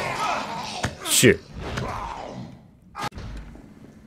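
A zombie snarls and growls as it attacks.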